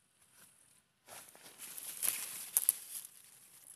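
Leaves rustle as a plant is pulled by hand.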